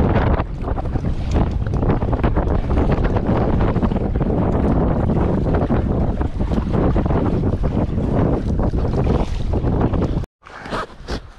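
A paddle splashes in choppy water.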